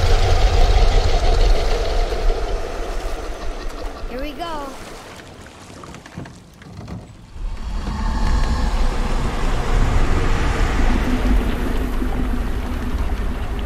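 Water splashes and laps against a small boat.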